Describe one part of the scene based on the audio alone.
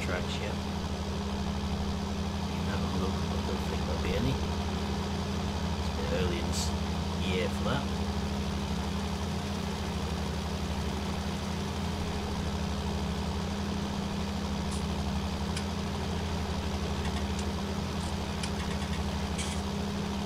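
A tractor engine hums steadily close by.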